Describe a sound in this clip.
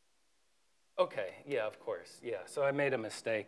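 A man speaks calmly in a lecturing tone, close to a microphone.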